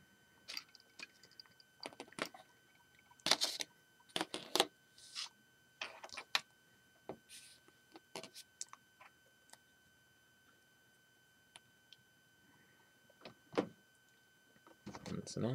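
Small plastic toy pieces clack as they are set down on a table.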